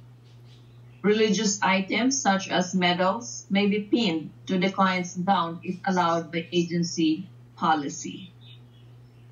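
A young woman speaks calmly, heard through a computer speaker.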